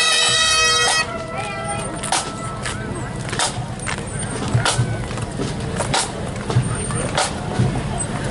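Drums beat a marching rhythm close by.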